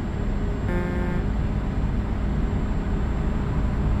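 A passing truck roars by close alongside.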